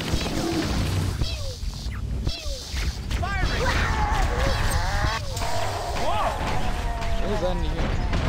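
A plasma gun fires rapid zapping bursts.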